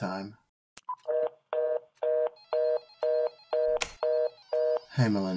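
A desk phone rings with short repeated electronic beeps.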